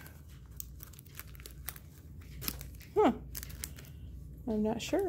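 Plastic packets rustle and tap as they are flipped through.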